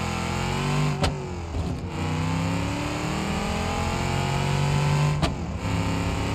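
A gearbox clunks sharply as the gear changes.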